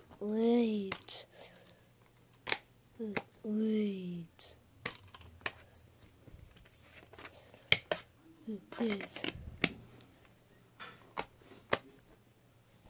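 A plastic disc case clicks and rattles as hands open and handle it.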